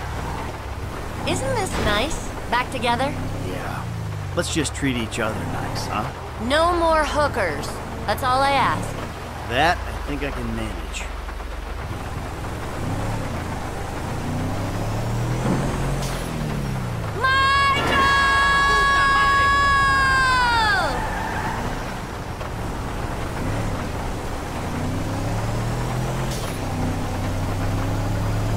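A truck engine rumbles and revs while driving.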